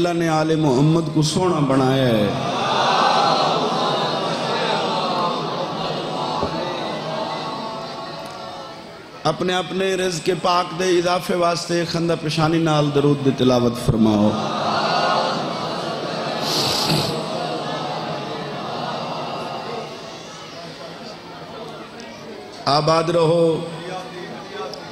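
A man speaks passionately into a microphone over a loudspeaker, in a large echoing space.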